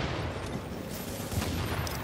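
Fire roars.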